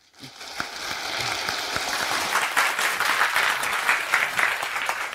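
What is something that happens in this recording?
An audience claps and applauds in a large hall.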